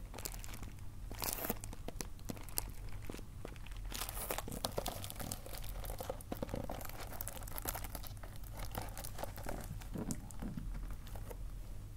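A cellophane-wrapped box crinkles and taps against a table as it is handled.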